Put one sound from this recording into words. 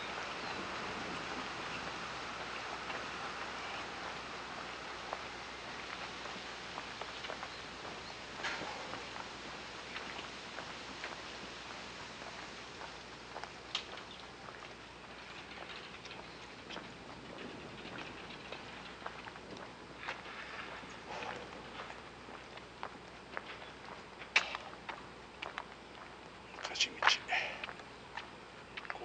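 Footsteps tap and scuff on a paved lane.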